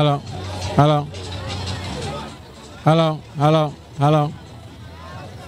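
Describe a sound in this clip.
A man shouts loudly several times in short bursts.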